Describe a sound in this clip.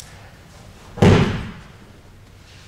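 A body lands with a heavy thud on a padded mat.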